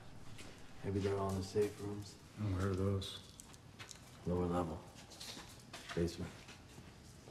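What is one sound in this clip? A man speaks quietly in a low, tense voice nearby.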